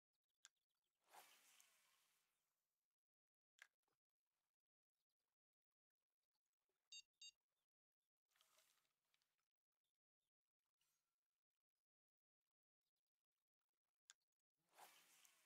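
A fishing rod swishes through the air in a quick cast.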